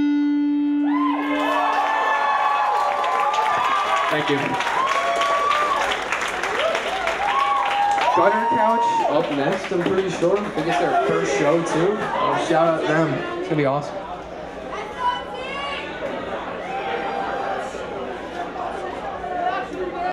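A crowd of young people shouts and cheers loudly around the listener.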